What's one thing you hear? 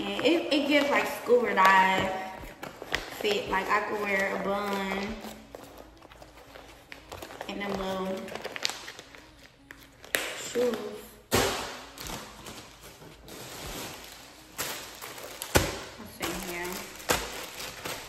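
A young woman talks calmly.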